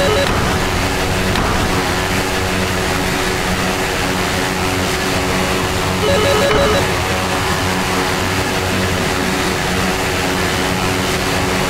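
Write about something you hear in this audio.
Laser cannons fire in a space video game.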